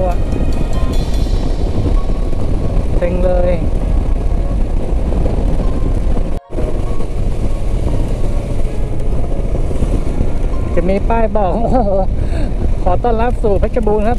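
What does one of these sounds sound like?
Wind roars loudly past a moving motorcycle.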